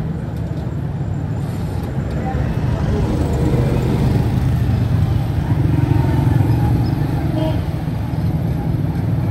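An auto-rickshaw engine rumbles steadily close by.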